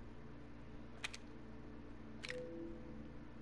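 Menu selection sounds click sharply a few times.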